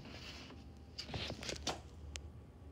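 A plastic bottle thumps down on a hard surface.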